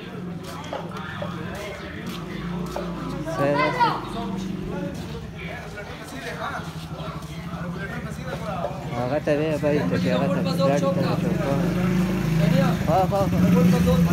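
Several men talk over one another in the street.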